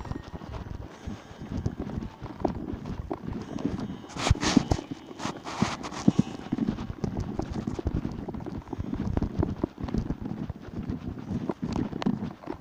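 Wind buffets the microphone outdoors in low, gusty rumbles.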